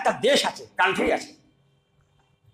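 An elderly man speaks with animation into a microphone, heard through a loudspeaker.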